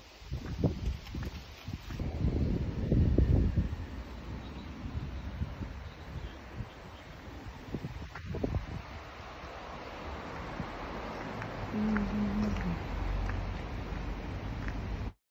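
Wind gusts outdoors, rumbling against the microphone.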